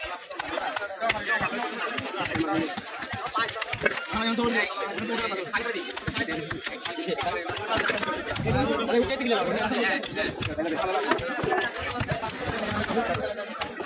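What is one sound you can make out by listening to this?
A heavy knife chops through a fish onto a wooden block.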